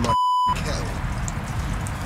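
Water pours into a pot.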